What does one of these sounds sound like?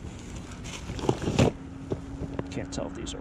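Small plastic pieces rattle in a cardboard box.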